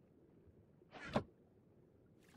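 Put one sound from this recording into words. A wooden chest lid thumps shut.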